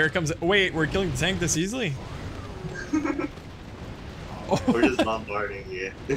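Fiery spells burst and explode with booming blasts.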